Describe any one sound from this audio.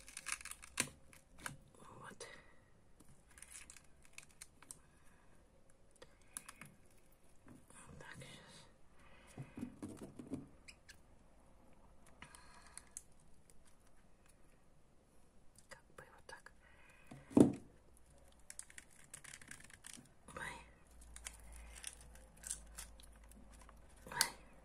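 Dry papery skin crackles as fingers peel it from a bulb.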